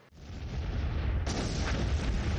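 A propeller plane drones overhead.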